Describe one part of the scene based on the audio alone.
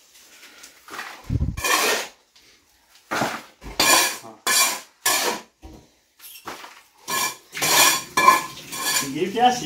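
A trowel scrapes mortar in a bucket in short, repeated strokes.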